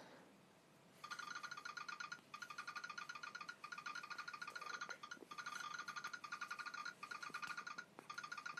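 Short ticking sounds repeat quickly and steadily as pieces are dragged around.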